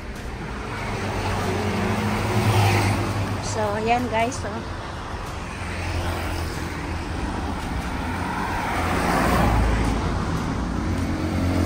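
A motor scooter engine hums as it passes close by on a street.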